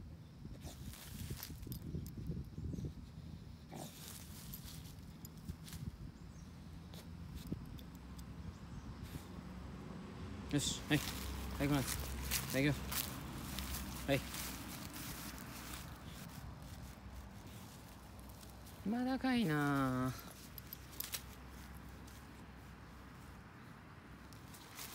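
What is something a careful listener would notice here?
A dog digs rapidly, its paws scratching and scraping at loose soil.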